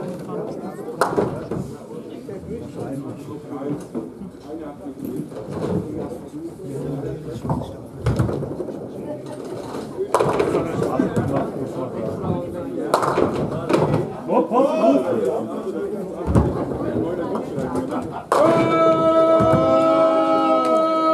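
Pins clatter as balls strike them.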